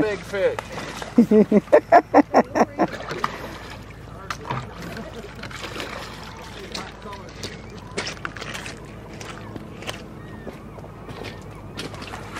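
Water laps gently against a pebbly shore.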